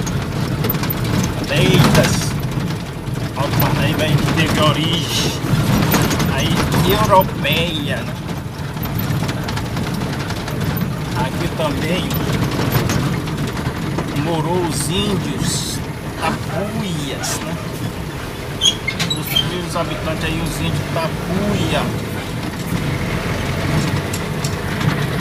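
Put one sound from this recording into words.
A vehicle drives along a paved road, heard from inside.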